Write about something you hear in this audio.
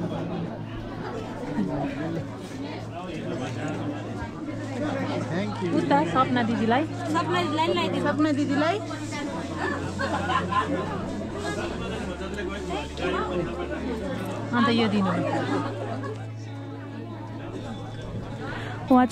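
A crowd of men and women chatter and talk close by.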